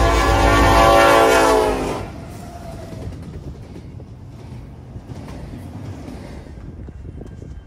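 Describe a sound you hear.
Freight car wheels clatter and rumble on the rails.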